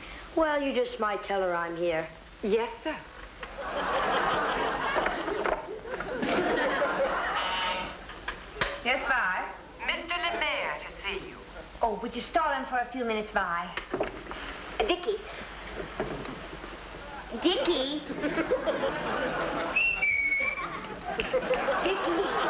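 A woman speaks brightly and with animation into a headset microphone.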